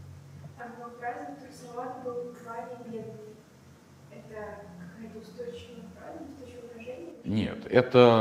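A young woman asks a question calmly, heard from a distance.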